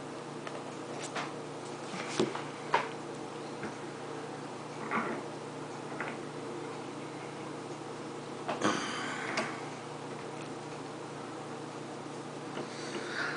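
Small metal tools click and scrape against a lock.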